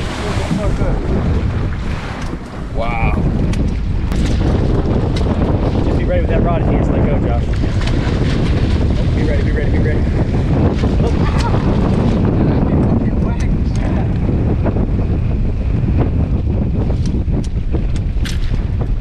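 Waves slosh and splash against a boat's hull.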